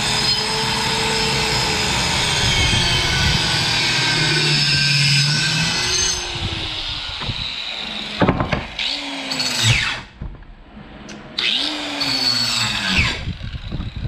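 A circular saw whines loudly as it cuts through wood.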